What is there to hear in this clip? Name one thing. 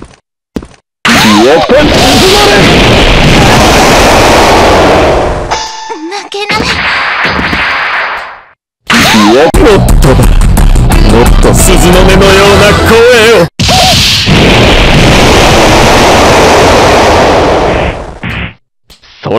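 Icy blasts crash and hiss loudly.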